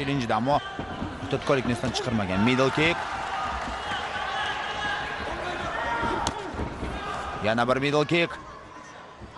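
A crowd of spectators shouts and cheers loudly.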